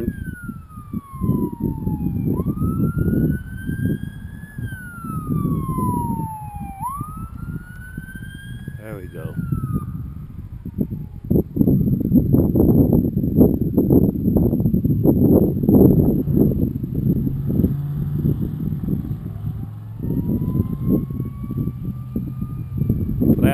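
The electric motor of a radio-controlled model plane whines overhead, rising and falling in pitch.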